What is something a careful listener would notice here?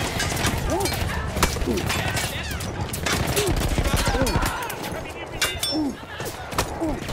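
Gunshots crack sharply in quick bursts.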